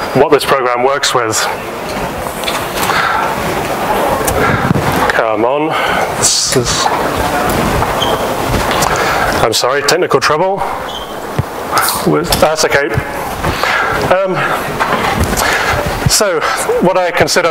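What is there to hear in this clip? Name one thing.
A man speaks into a microphone in a large echoing hall, presenting calmly.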